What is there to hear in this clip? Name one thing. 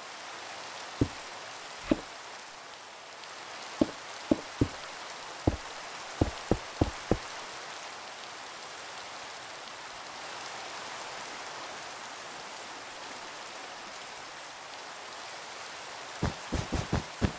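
Rain hisses steadily outdoors.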